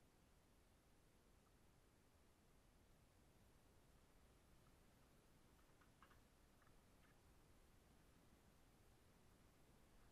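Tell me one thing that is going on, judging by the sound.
Pliers click against wires.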